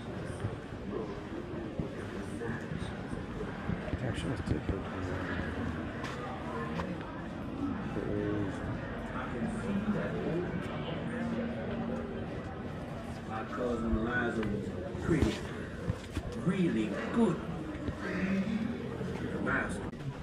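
Many visitors talk quietly in an echoing hall.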